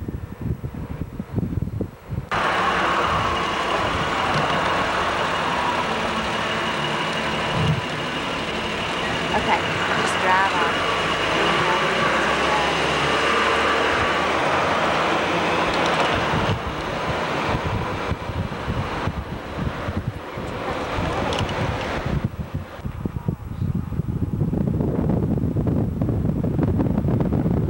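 A car drives along a road, its engine and tyres humming steadily.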